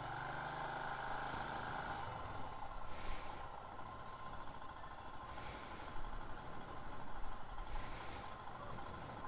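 A motorcycle engine idles and rumbles steadily up close.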